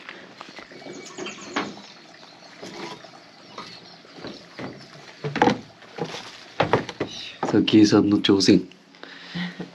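Firewood logs knock and clatter together.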